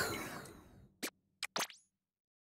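A menu chimes with short blips.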